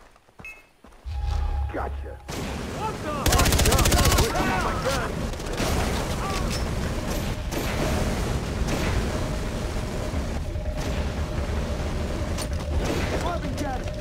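An explosion booms and fire roars.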